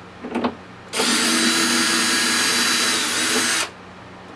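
A cordless drill whirs steadily.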